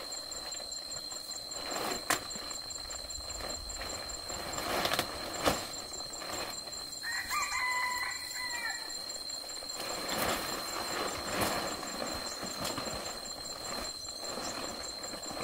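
A plastic sheet rustles and flaps as it is thrown onto a thatched roof.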